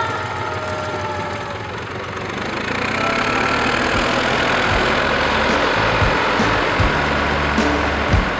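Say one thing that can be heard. Loader tyres crunch through snow.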